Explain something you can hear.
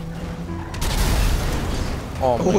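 A car explodes with a loud boom.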